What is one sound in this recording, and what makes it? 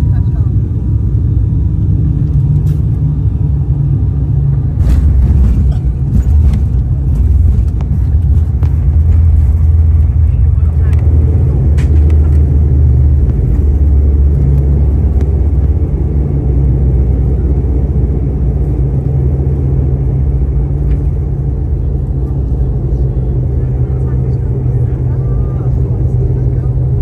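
Airliner wheels rumble and thump over the runway.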